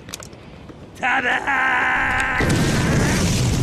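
A man shouts loudly and triumphantly.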